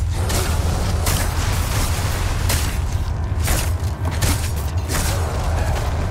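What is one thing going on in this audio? A knife slashes and chops at splintering wooden planks.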